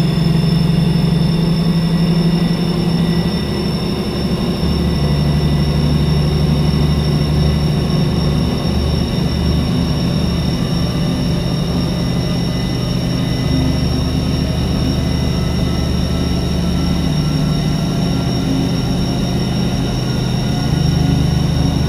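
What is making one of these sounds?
A heavy electric train engine hums steadily as the train speeds along the track.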